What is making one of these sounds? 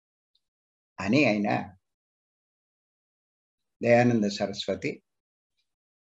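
An elderly man speaks calmly over an online call, pausing between phrases.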